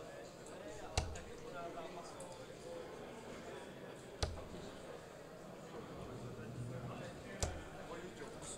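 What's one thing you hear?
Darts thud into a dartboard one after another.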